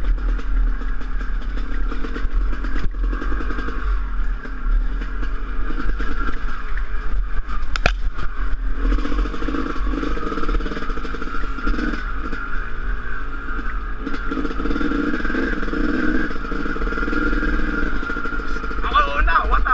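Wind rumbles loudly against a helmet microphone.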